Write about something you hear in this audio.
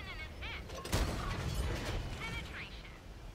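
A shell explodes nearby with a heavy blast.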